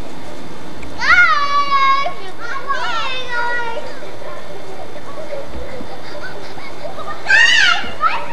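Young children shout and squeal excitedly outdoors.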